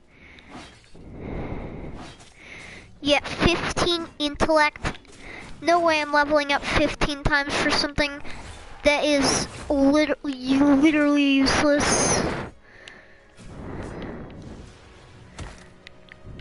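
Game sword swings whoosh and clash in short bursts.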